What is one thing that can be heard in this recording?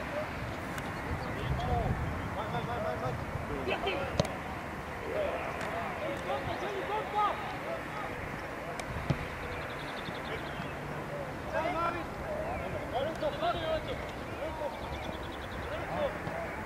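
Teenage boys shout to each other across an open field.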